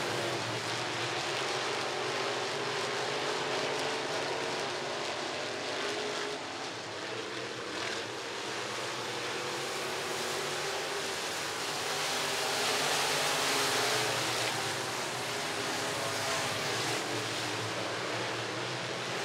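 Race car engines roar loudly around a dirt track.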